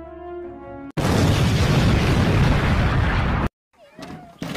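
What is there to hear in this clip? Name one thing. A huge explosion roars.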